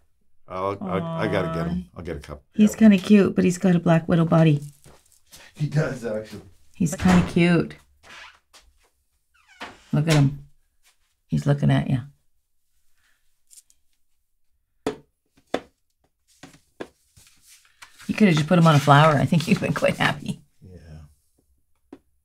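A woman speaks calmly and warmly close to a microphone.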